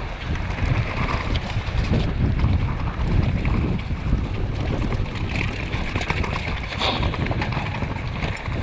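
A bicycle chain and frame rattle over bumps.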